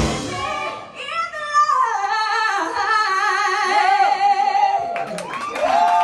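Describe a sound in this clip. A woman sings into a microphone with vibrato.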